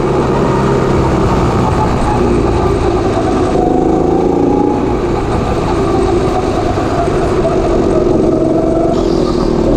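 A go-kart engine buzzes loudly and steadily close by.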